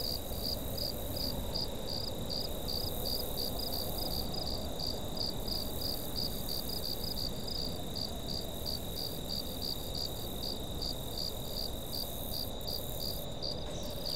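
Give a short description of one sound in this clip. Footsteps swish softly through grass.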